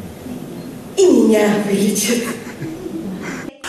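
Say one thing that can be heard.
A woman laughs loudly through a loudspeaker.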